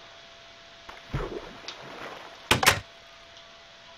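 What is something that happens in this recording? Water splashes as something drops into it.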